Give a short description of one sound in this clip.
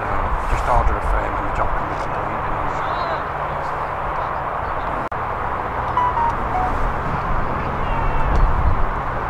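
Teenage boys call out to each other across an open field.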